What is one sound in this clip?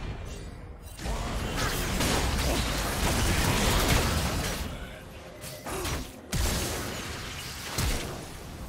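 Weapons clash and hit repeatedly in a video game fight.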